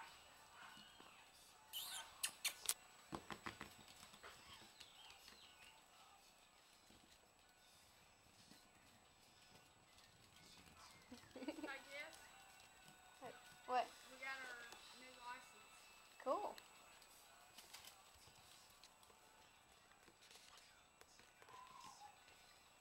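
Puppy paws patter and scrabble on a hard wooden floor.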